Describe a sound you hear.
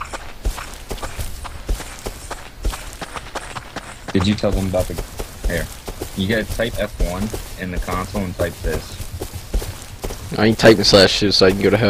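Footsteps thud on dirt and grass.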